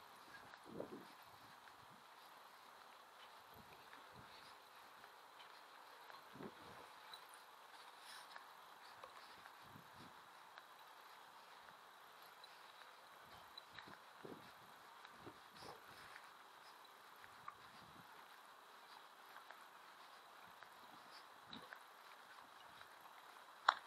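Water laps gently against a stone quay.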